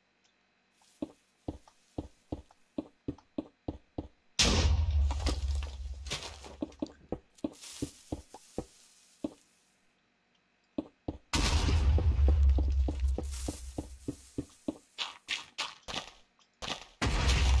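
Quick dry tapping repeats as blocks are dug away.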